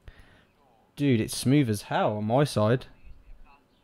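A man speaks with animation, close to a microphone.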